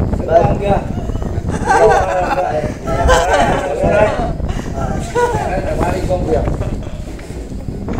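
A group of men talk loudly over one another close by.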